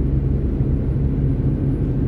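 A truck rumbles past in the oncoming lane.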